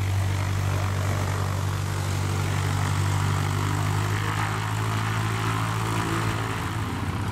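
A small propeller plane's engine drones steadily as it flies low overhead.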